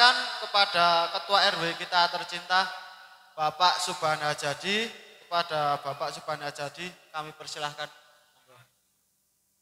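A young woman speaks through a microphone over loudspeakers.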